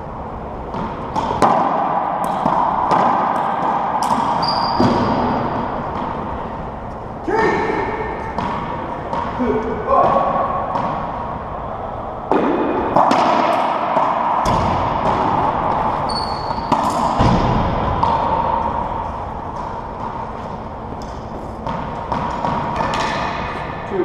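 A racquetball cracks off rackets and echoes off the walls of an enclosed court.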